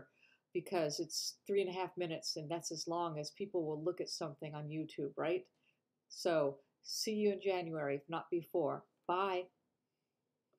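An older woman speaks with animation close to a microphone.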